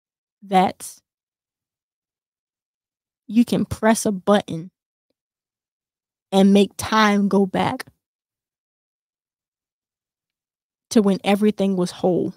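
A young woman speaks calmly into a microphone, in short phrases with pauses.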